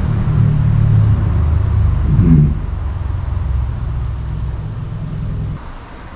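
A walrus breathes with a deep, steady rumble up close.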